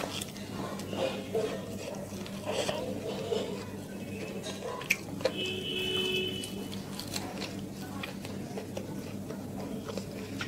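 Fingers squish and mix rice on a plate.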